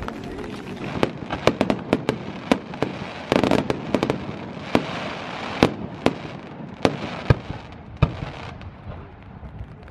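Fireworks bang and crackle overhead.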